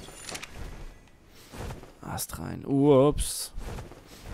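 A large bird's wings flap in flight.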